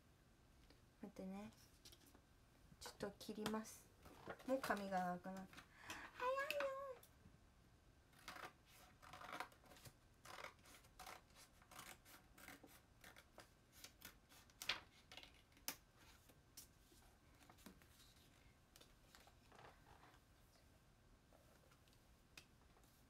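A young woman speaks softly and close up, with pauses.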